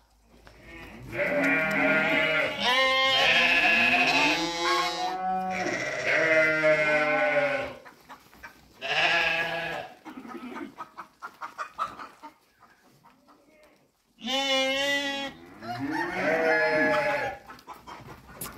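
Sheep bleat loudly close by.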